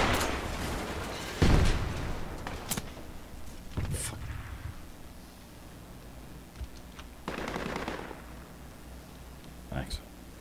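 Footsteps crunch softly on undergrowth.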